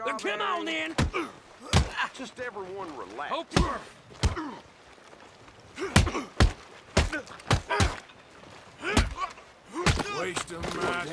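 Fists thud as men brawl.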